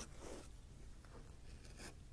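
Thread pulls through leather with a soft rustle.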